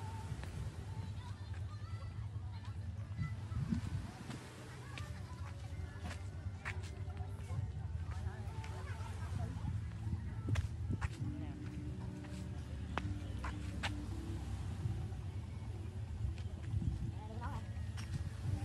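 Palm fronds rustle in the wind.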